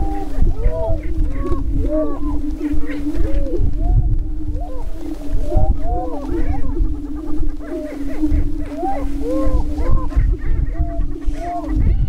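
A prairie chicken booms with a low, steady hum.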